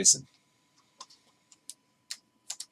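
Trading cards rustle and flick in hands.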